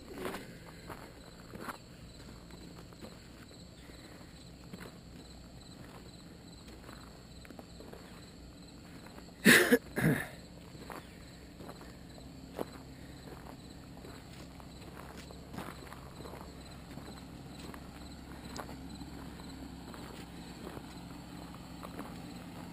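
An engine idles with a low, steady hum.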